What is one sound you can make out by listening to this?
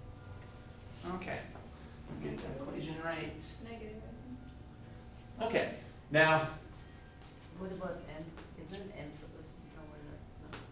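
A middle-aged man speaks calmly, as if lecturing.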